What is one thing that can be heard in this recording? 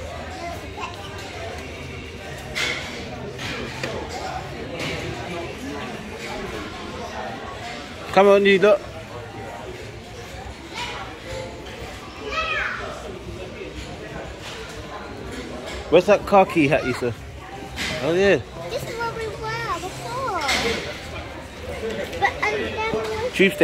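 Voices murmur steadily in a busy indoor space.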